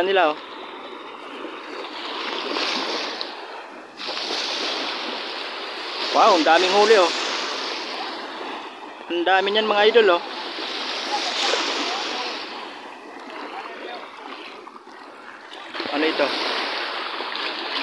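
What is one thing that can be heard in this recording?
Children and men call out to each other outdoors.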